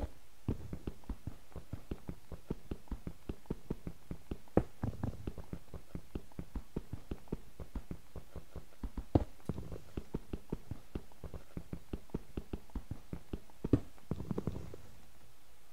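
A pickaxe taps rapidly on stone blocks.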